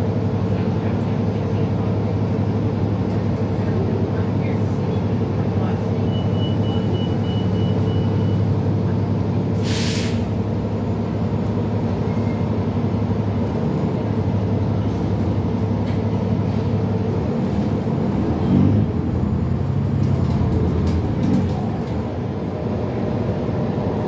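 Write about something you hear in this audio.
A bus engine hums steadily from inside the vehicle.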